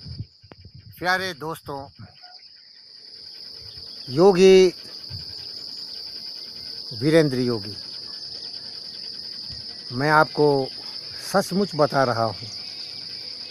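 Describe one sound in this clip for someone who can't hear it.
An elderly man speaks calmly, close by, in short phrases.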